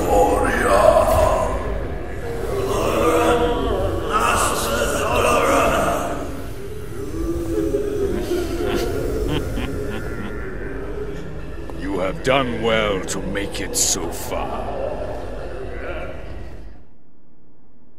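Flames roar and whoosh.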